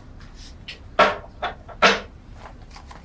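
A small can is set down on a table with a knock.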